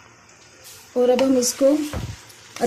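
A wooden spatula scrapes and stirs meat in a pan.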